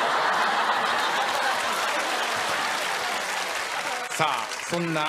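A studio audience laughs loudly.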